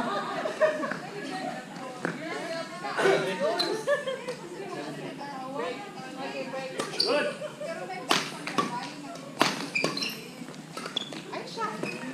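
Rackets strike a shuttlecock with sharp pops.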